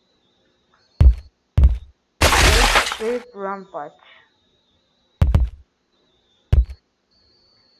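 Heavy blocks thud down one after another.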